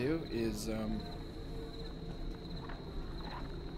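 Footsteps tread slowly on a floor.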